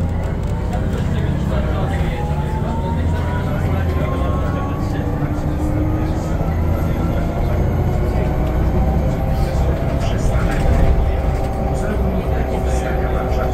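A bus engine hums and whines steadily while driving.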